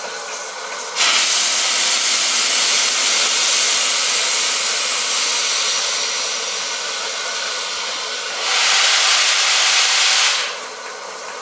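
Steam blasts out loudly from a steam locomotive's cylinders in a roaring hiss.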